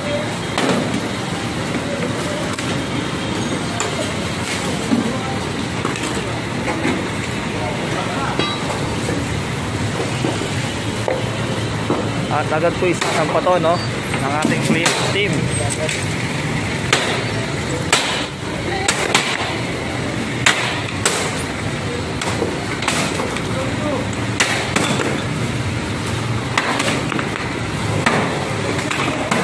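Traffic hums on a busy street outdoors.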